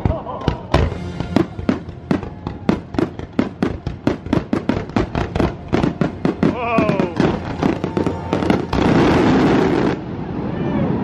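Fireworks bang and crackle in rapid bursts.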